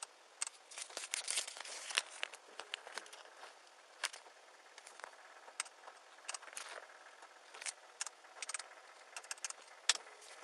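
Clothing rustles and brushes against a close microphone.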